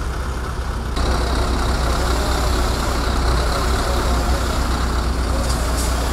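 A heavy V8 diesel tow truck approaches along a road.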